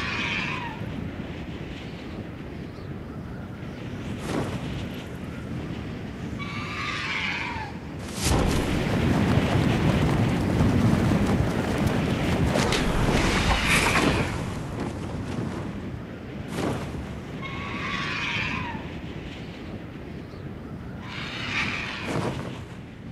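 A large bird screeches several times.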